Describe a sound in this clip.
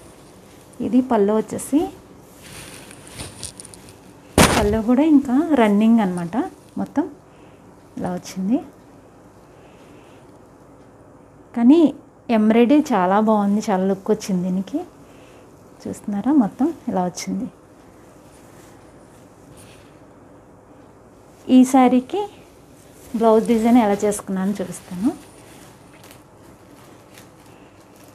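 Thin fabric rustles as it is handled.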